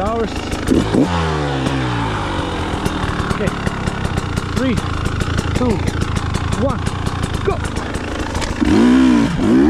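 An enduro motorcycle engine idles.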